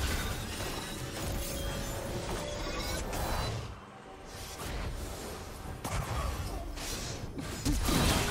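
Fantasy battle sound effects of spells crackle and burst.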